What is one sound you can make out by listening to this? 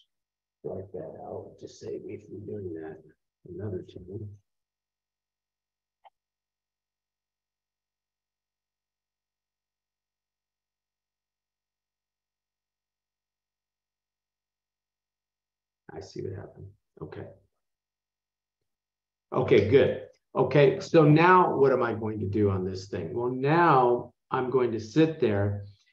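A man explains calmly into a microphone, with long pauses.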